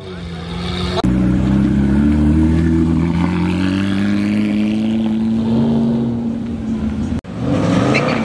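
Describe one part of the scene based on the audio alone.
A sports car engine roars loudly as the car drives past.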